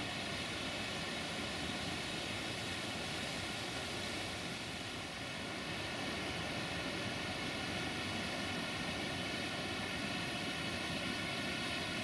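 A waterfall splashes and roars steadily.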